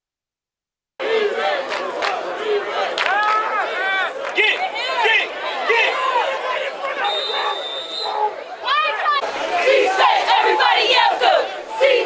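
Young women chant and cheer loudly outdoors.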